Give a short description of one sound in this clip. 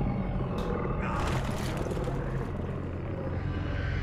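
A huge beast lets out a loud, rasping roar.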